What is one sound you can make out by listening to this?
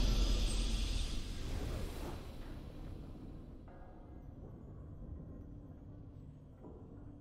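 A triumphant game fanfare plays and slowly fades away.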